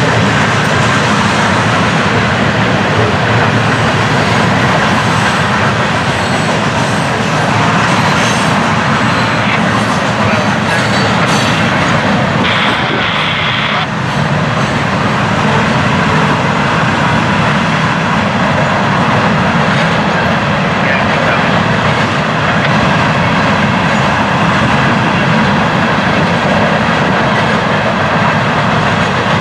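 A freight train rumbles past close by, its wheels clattering and squealing on the rails.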